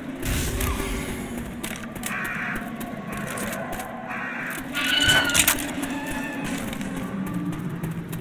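Footsteps walk steadily on hard ground.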